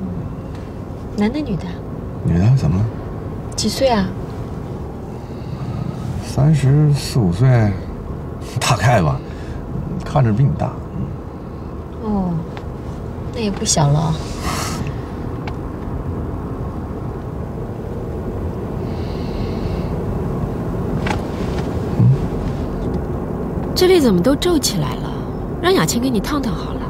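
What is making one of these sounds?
A woman speaks playfully nearby.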